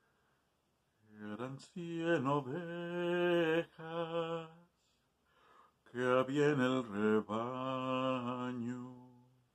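A man sings close to the microphone, holding long notes.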